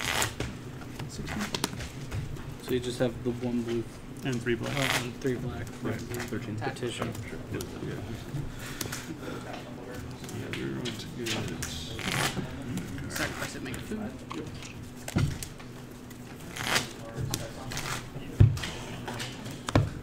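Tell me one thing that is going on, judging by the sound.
Cards are laid and slid on a soft mat.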